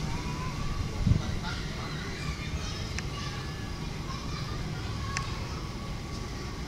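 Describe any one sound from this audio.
A distant train rumbles low as it approaches.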